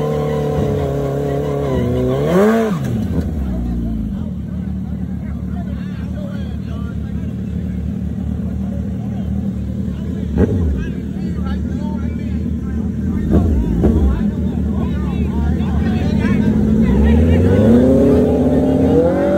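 Motorcycle engines idle loudly and rev sharply.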